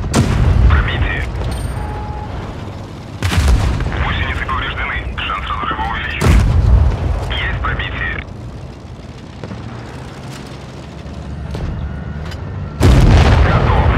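Tank cannons fire with loud booming blasts.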